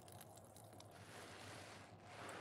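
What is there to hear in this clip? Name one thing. Gloved hands squeeze a soaked sponge with soft squelching.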